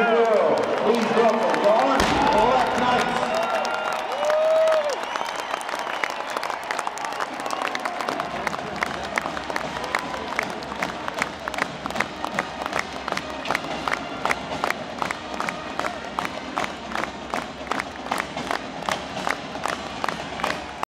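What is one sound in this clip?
A large crowd cheers and roars in an open stadium.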